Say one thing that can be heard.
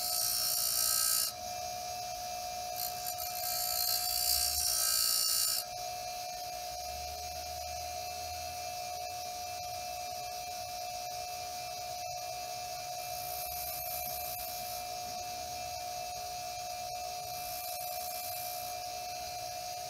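A metal tool grinds against a spinning stone with a high hiss.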